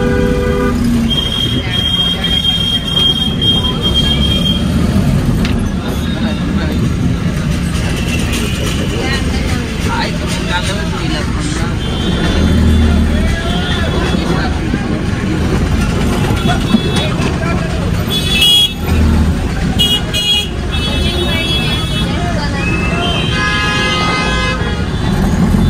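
Busy street traffic hums outside.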